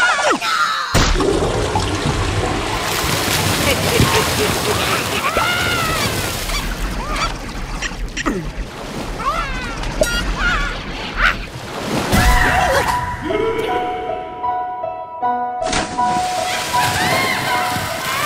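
Water splashes and churns as a heavy object drops into it.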